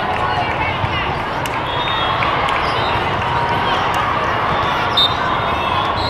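A large crowd murmurs and chatters throughout a big echoing hall.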